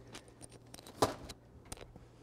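A cupboard door shuts with a thud.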